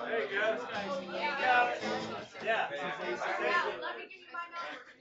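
An acoustic guitar strums.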